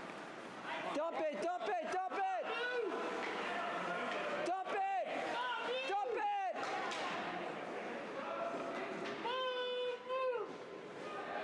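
Spectators shout loudly to cheer on players.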